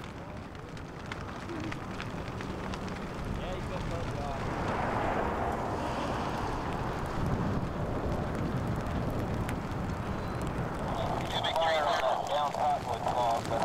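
A grass fire crackles and roars close by.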